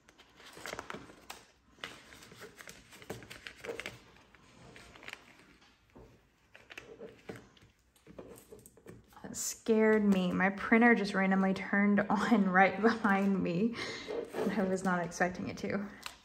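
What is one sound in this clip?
Plastic pages crinkle as they are turned.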